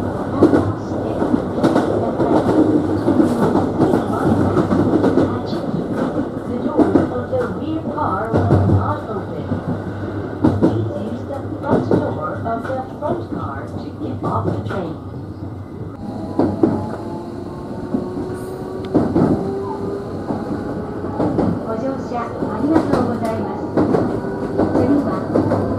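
A train rumbles along the tracks, its wheels clacking over rail joints.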